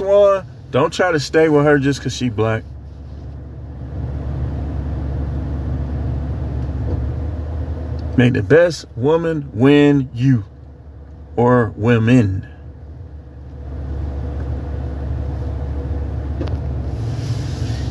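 A car engine hums steadily inside the cabin.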